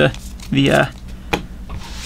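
Playing cards shuffle and slap together.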